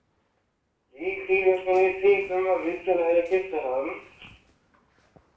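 A man speaks through a tinny radio.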